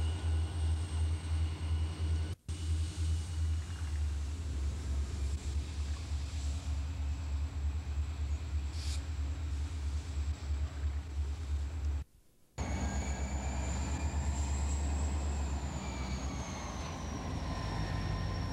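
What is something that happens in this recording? A diesel locomotive engine rumbles loudly and steadily nearby.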